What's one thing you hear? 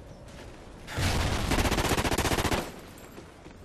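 An automatic rifle fires a burst.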